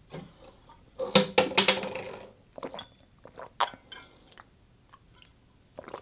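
A man drinks from a bottle with loud gulps.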